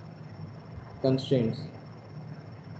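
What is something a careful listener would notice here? A man speaks briefly and calmly through a microphone.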